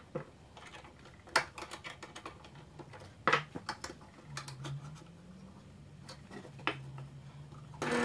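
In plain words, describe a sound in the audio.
Wooden blocks knock and clatter on a metal table.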